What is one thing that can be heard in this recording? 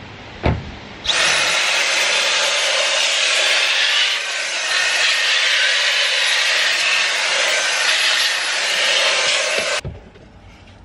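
A handheld vacuum cleaner whirs loudly and steadily.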